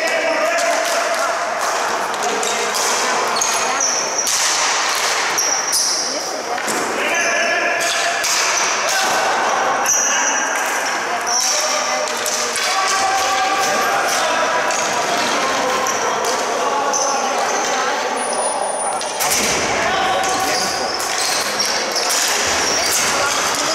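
Sticks clack against a ball and the hard floor in a large echoing hall.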